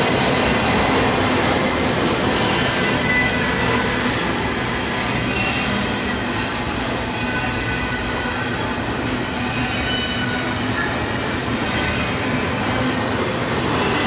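A long freight train rumbles past close by, its wheels clacking over the rails.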